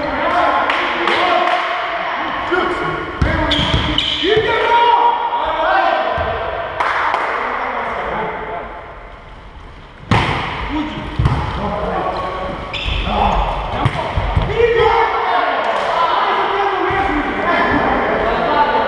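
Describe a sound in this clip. Several men talk and call out to each other in a large echoing hall.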